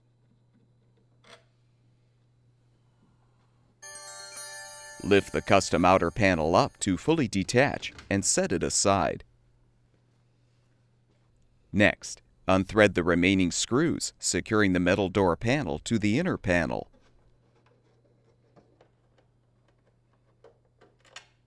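A screwdriver squeaks and clicks as it turns screws.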